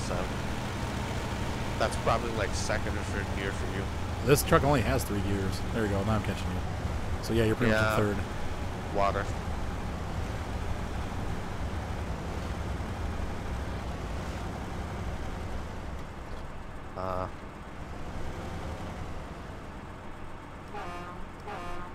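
A truck engine rumbles low and steady.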